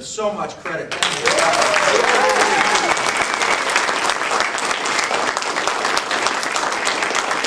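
A man claps his hands.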